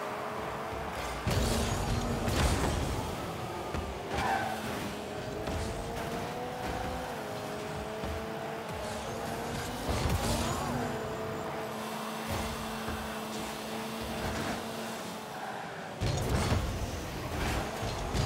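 A car engine hums steadily and shifts in pitch.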